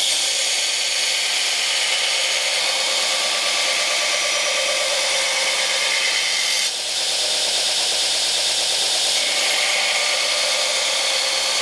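A belt grinder whirs loudly, grinding a steel blade with a harsh, steady hiss.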